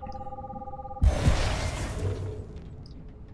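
An electronic whoosh bursts and fades.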